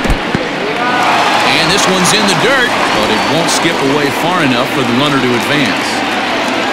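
A stadium crowd cheers loudly.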